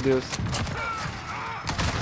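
A gun is reloaded with metallic clicks.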